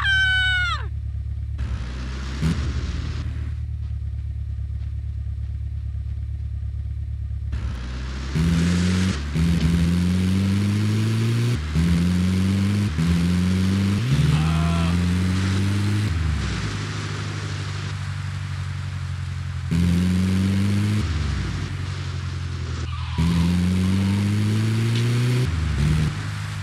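A van's engine hums steadily and revs up again and again as it drives.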